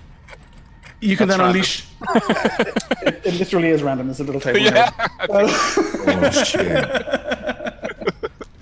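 Men laugh loudly over an online call.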